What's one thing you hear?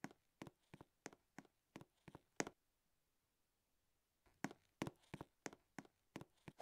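Footsteps tap quickly and evenly, pause briefly, then start again.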